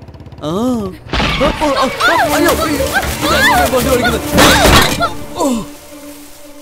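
A young man sings with animation.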